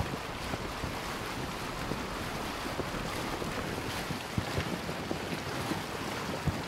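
Water splashes and rushes against a small sailboat's hull as it moves.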